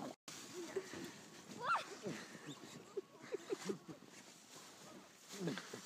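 A sled scrapes over snow.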